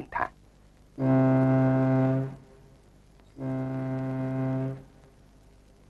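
A ship's horn sounds twice, long and deep.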